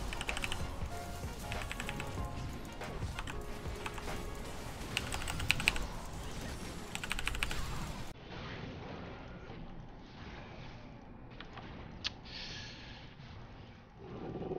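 Video game spell effects burst and clash rapidly.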